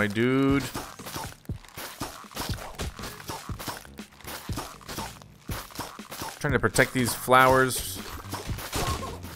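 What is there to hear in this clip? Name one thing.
Cartoonish pops and soft splats of a video game battle sound again and again.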